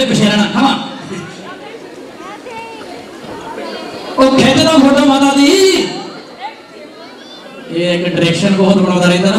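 A keyboard plays music over loudspeakers.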